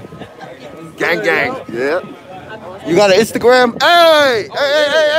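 A young man speaks loudly and excitedly close by.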